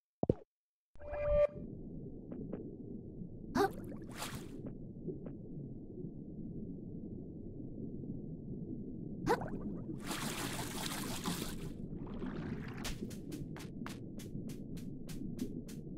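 A low, steady underwater rumble hums throughout.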